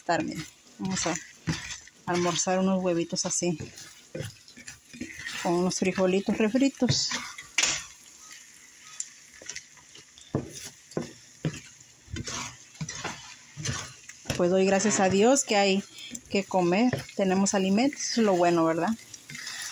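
A spatula scrapes and stirs scrambling eggs in a frying pan.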